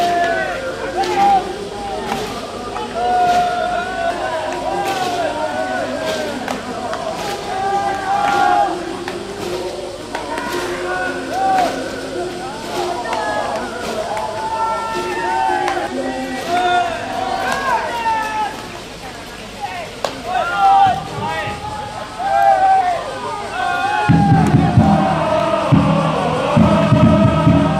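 Young men shout and call out loudly across an open field.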